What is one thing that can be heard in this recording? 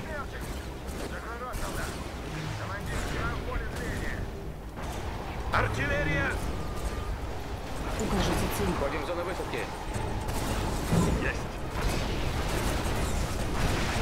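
Laser weapons zap and crackle in a battle.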